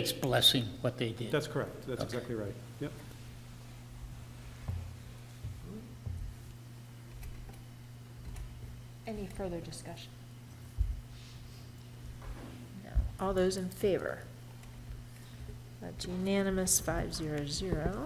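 Adult men and women talk calmly in turn, heard through microphones.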